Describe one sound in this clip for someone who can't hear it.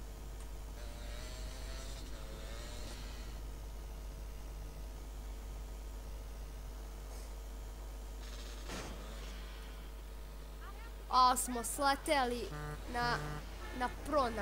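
A motorbike engine revs steadily.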